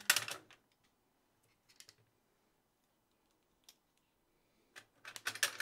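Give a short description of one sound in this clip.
Plastic packaging crinkles and rustles.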